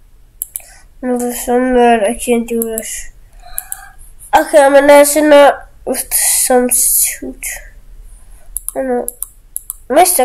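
A young boy talks with animation close to a microphone.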